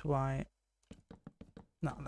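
A wooden block breaks with a crumbling crack.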